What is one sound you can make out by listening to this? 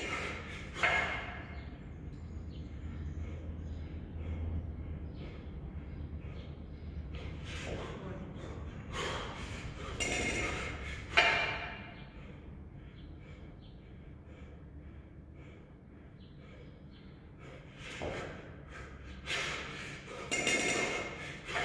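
A man exhales hard with effort.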